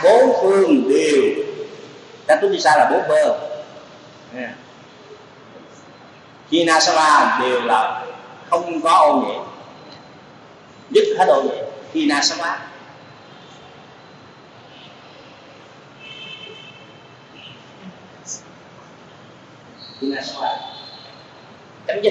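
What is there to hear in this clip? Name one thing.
An elderly man speaks into a microphone in bursts, calmly, with pauses.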